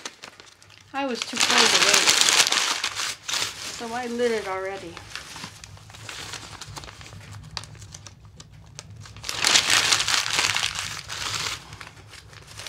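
Paper rustles and crumples.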